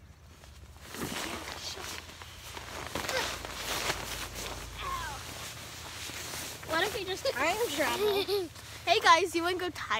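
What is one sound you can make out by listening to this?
An inflatable plastic mattress rustles and squeaks as it is handled.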